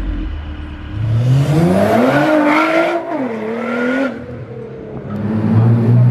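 A sports car engine revs up loudly as it accelerates away.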